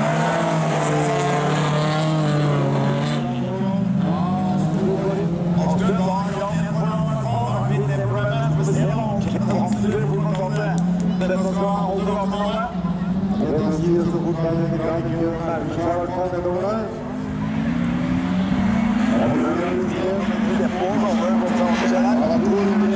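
Racing car engines roar, revving up and down.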